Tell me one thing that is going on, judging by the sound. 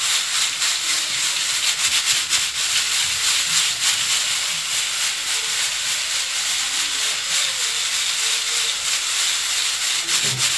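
Dry grains rustle and crunch as a hand stirs them in a bowl.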